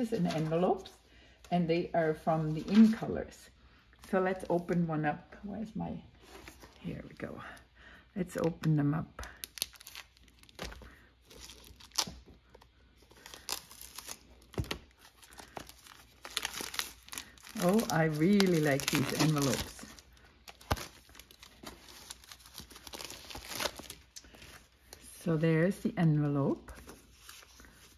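Plastic wrapping crinkles as hands handle a packet of paper.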